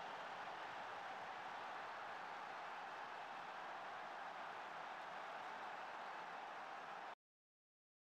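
A stadium crowd murmurs in a steady hum.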